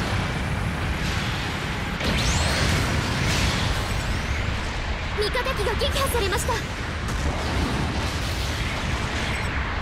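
A beam weapon hums and zaps.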